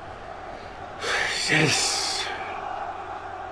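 A large stadium crowd roars loudly.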